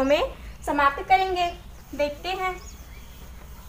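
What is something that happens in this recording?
A young woman speaks clearly and with animation close by.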